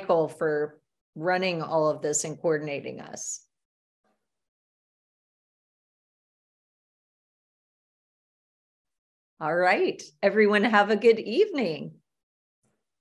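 A middle-aged woman speaks calmly and warmly over an online call.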